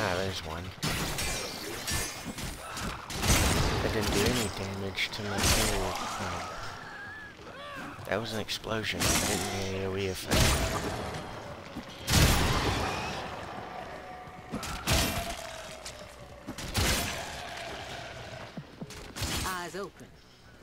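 Heavy weapon blows land with sharp, booming impacts.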